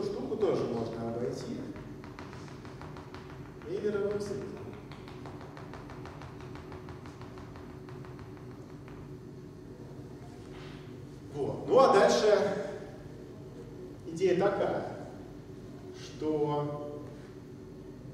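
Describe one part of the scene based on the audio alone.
A man speaks in bursts, lecturing calmly in a room with some echo.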